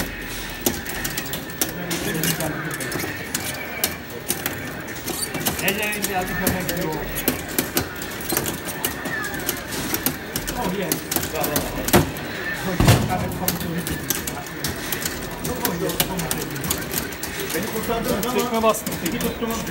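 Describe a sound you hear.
Arcade fighting game sound effects of punches, kicks and blasts play loudly from a cabinet speaker.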